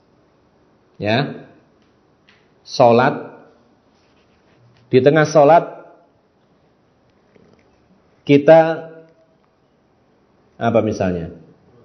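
A man speaks calmly into a microphone in short phrases with pauses.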